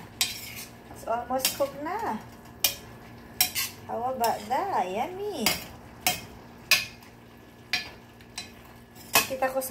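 A metal utensil scrapes and clinks against a pan.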